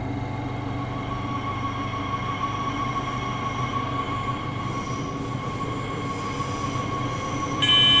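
An electric train pulls away with a rising whine as it speeds up.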